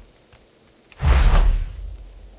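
A character's body whooshes as it glides through the air.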